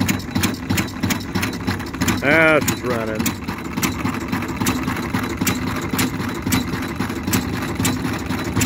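A small steam engine chuffs in a quick, steady rhythm.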